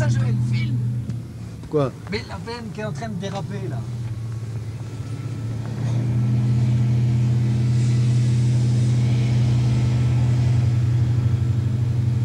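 A heavy truck engine hums steadily close by, growing louder.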